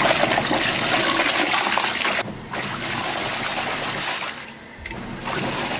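Water churns and sloshes in a washing machine drum.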